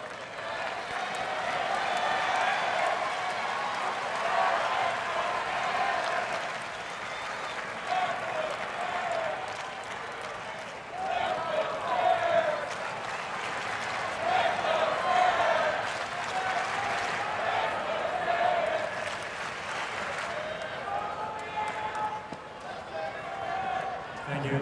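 A large crowd murmurs and chatters in an open stadium.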